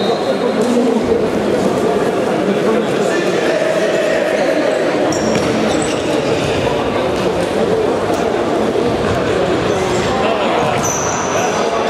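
A ball thuds as players kick it in an echoing hall.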